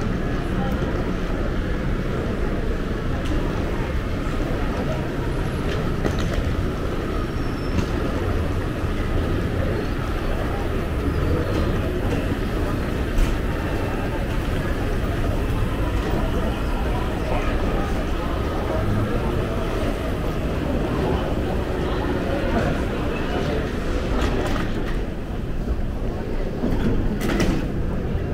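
A low rumbling hum fills the large echoing hall.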